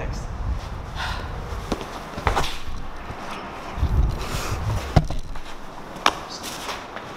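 Shoes step on a hard floor.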